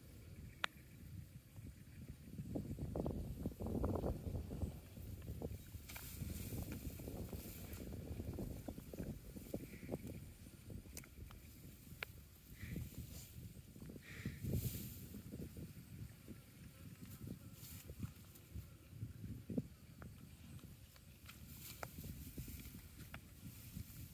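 Wind rumbles and buffets outdoors.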